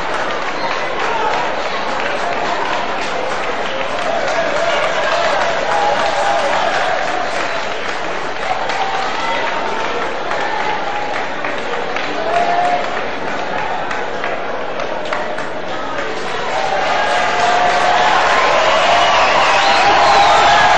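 A crowd applauds steadily in a large open space.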